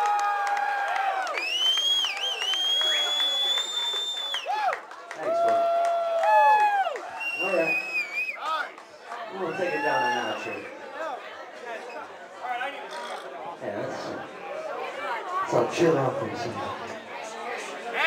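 A man sings loudly into a microphone over loudspeakers.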